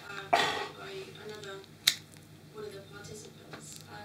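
A lighter clicks and flares.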